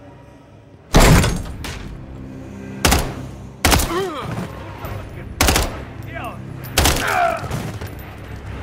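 Loud rifle shots ring out one at a time, echoing sharply off hard walls.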